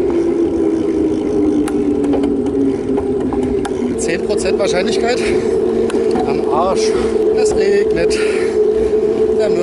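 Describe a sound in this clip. Bicycle tyres roll on asphalt.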